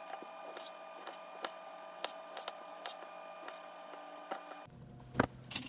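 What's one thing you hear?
A knife cuts through an orange on a wooden cutting board.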